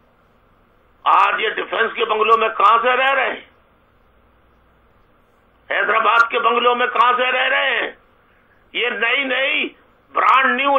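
A middle-aged man speaks calmly into a microphone in short bursts.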